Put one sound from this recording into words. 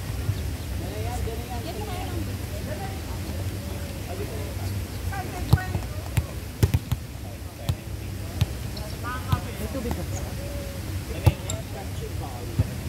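Young men call out to each other during play, outdoors.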